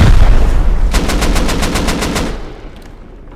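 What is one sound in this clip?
Flames crackle rapidly after the blast.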